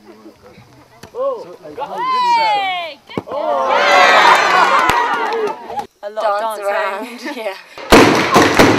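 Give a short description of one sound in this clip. A group of young people shout and cheer outdoors.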